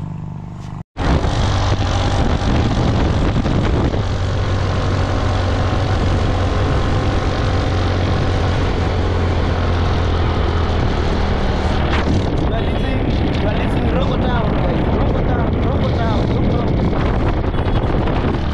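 Wind rushes loudly past while riding.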